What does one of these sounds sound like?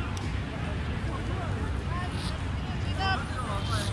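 A cricket bat strikes a ball in the distance.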